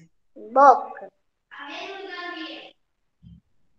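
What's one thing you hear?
A young girl speaks softly over an online call.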